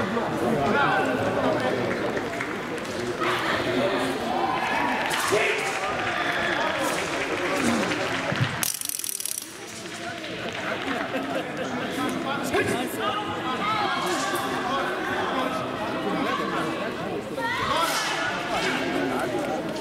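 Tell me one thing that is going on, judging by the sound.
A crowd shouts and cheers in a large echoing hall.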